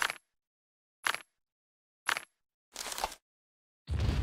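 Short menu clicks sound one after another.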